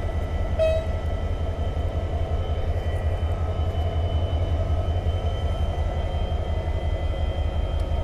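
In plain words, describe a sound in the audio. A diesel locomotive idles with a deep, steady rumble close by.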